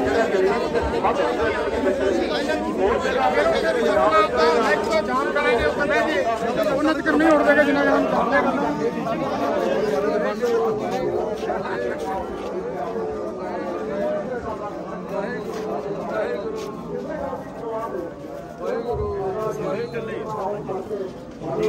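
A crowd of men talk and shout close by, outdoors.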